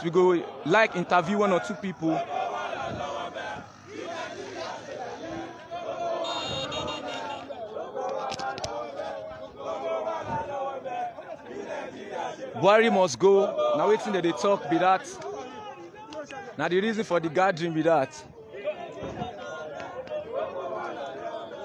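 A crowd of young men chants loudly outdoors.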